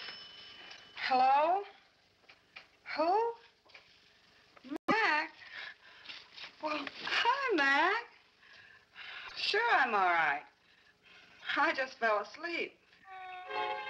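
A young woman talks animatedly into a telephone, close by.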